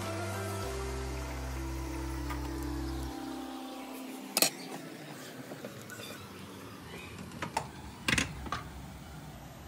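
A spatula scrapes and taps against a frying pan.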